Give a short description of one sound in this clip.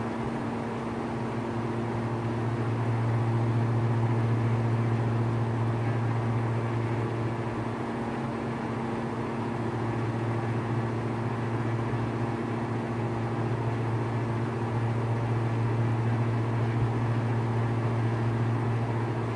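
A small propeller plane's engine drones steadily in the cockpit, swelling and easing slightly.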